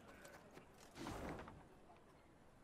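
A paper scroll unrolls with a soft swish.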